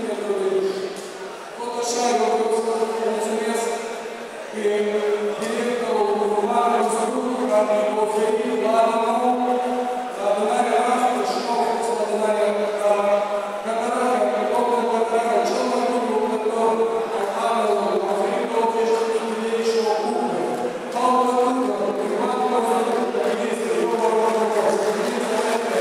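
A man speaks steadily into a microphone, heard through loudspeakers in a large echoing hall.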